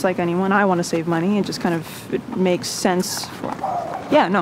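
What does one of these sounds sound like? A young woman speaks with concern, close by.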